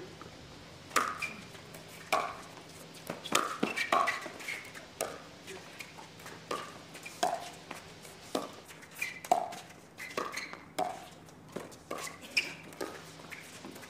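Paddles strike a plastic ball in quick, sharp pops during a rally.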